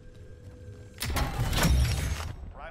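A bright game reward chime rings out.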